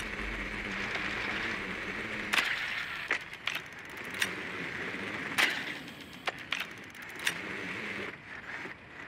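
A small motor whirs as a little machine rolls across a concrete floor.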